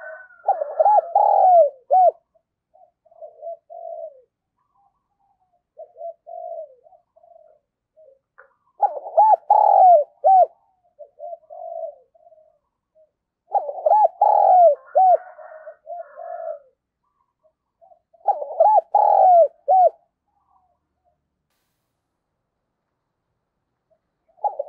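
A dove coos close by in repeated soft, rolling phrases.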